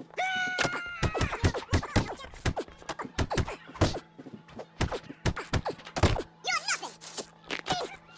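Punches land with heavy thuds, again and again.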